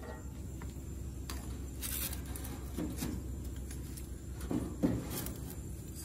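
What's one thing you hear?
Metal tongs clink against a metal grill.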